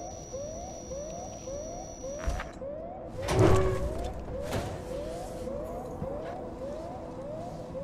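A motion tracker pings with short rising chirps.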